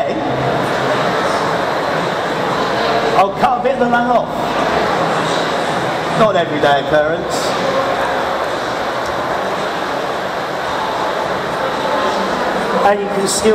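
A crowd murmurs in a busy hall.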